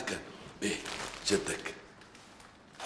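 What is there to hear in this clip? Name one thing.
A man laughs and talks cheerfully close by.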